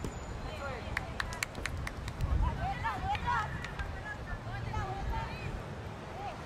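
Hockey sticks clack against each other and a ball.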